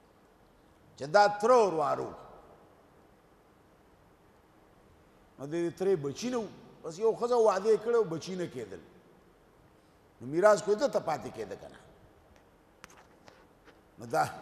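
An elderly man speaks in a slow, drawn-out voice through a microphone, with long pauses.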